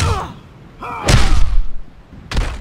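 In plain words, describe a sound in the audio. A body crashes to the ground.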